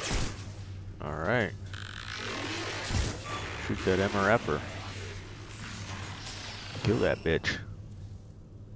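A robotic voice speaks in a glitching, distorted electronic tone.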